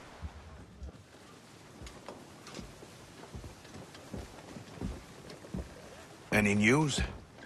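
Wind blows across the open sea.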